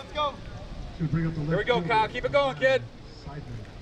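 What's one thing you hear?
Young men shout and cheer loudly from nearby.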